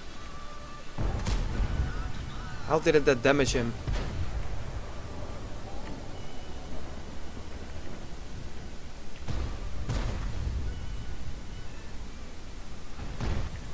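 Tank cannons fire with loud, heavy booms.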